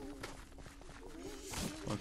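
A man laughs close to a microphone.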